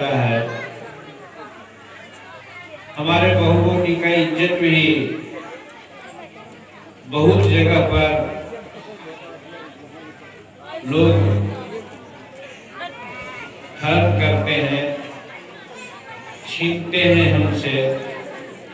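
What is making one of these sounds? An elderly man speaks forcefully into a microphone, heard through loudspeakers in short bursts with pauses.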